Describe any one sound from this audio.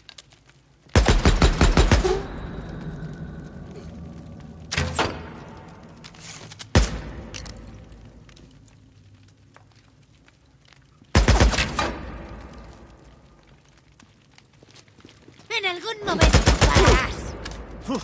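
A rifle fires rapid bursts of shots that echo around a large room.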